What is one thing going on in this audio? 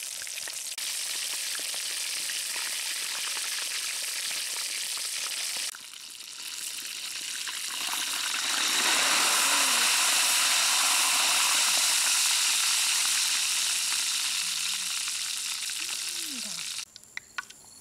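Hot oil sizzles and bubbles loudly.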